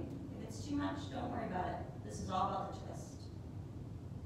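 A woman speaks calmly and softly close to a microphone.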